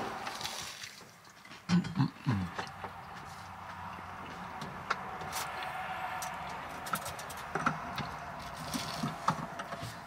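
A man bites into crunchy toast and chews.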